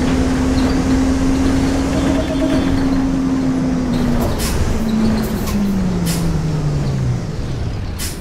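A bus engine hums steadily, then winds down as the bus slows to a stop.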